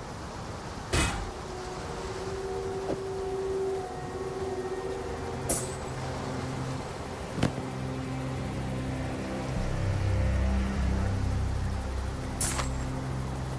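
Short game clicks sound as items are picked up and put down.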